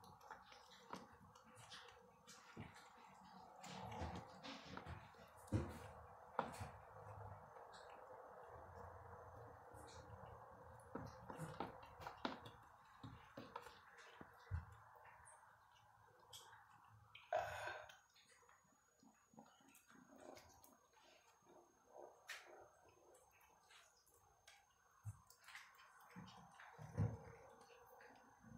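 A kitten chews and tears at a dead rat with wet crunching sounds.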